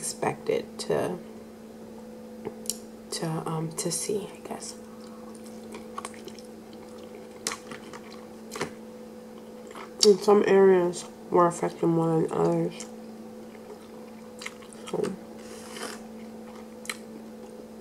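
A young woman chews and munches on crunchy food close to a microphone.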